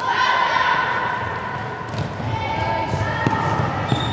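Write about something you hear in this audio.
A ball thuds as it bounces on the court.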